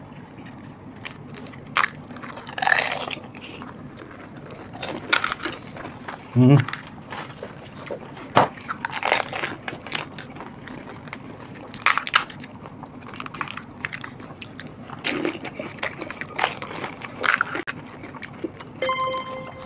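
A man and a woman crunch and slurp crispy snacks up close.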